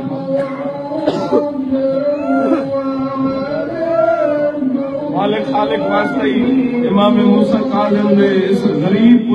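A man chants a mournful recitation loudly into a microphone.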